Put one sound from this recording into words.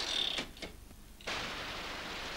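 A typewriter clacks as keys are struck.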